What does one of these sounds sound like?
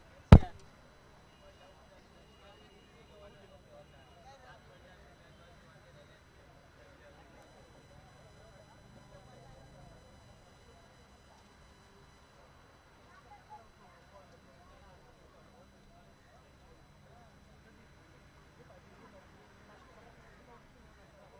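Several men talk quietly nearby, outdoors.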